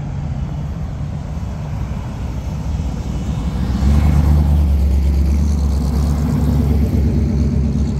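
A V8 hot rod rumbles past.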